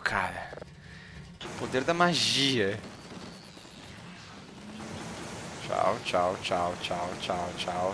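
A dune buggy engine revs and rumbles.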